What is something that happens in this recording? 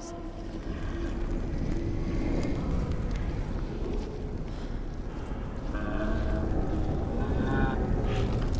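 A torch flame crackles and roars close by.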